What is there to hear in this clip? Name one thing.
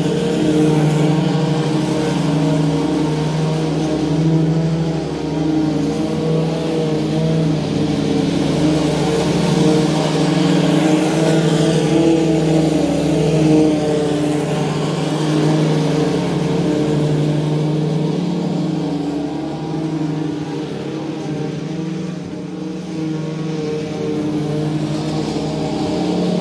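A commercial lawn mower engine drones while cutting grass.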